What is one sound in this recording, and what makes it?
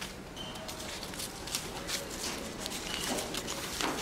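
Wood shavings crinkle and rustle in a hand.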